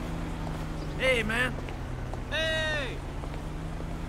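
A man calls out briefly nearby.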